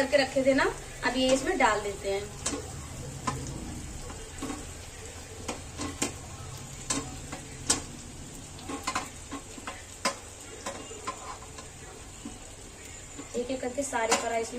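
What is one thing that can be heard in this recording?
Fried pieces of food clink and tap against a metal plate.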